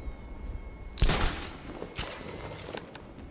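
A grappling line fires and whooshes through the air.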